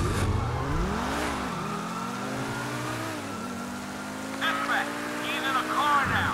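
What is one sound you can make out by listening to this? A sports car engine revs hard, rising in pitch and dropping with each gear change.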